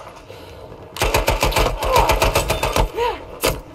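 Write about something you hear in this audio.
A submachine gun fires in rapid bursts close by.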